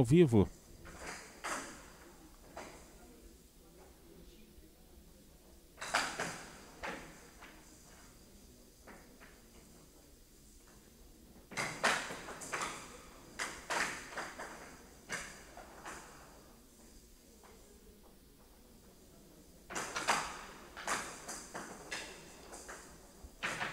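A rattling ball rolls and bounces across a table.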